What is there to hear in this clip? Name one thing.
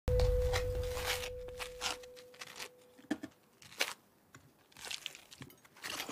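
A knife scrapes spread across crisp toast.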